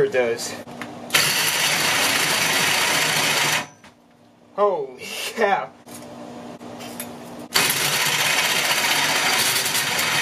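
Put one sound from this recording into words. A power drill whirs and grinds loudly as a hole saw cuts into metal, in bursts that speed up and slow down.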